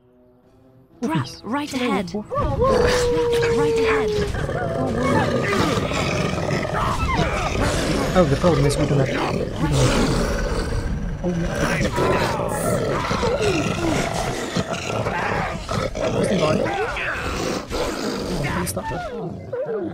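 Wolves snarl and growl in a fight.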